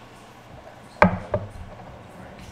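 Ceramic bowls clink as they are set down.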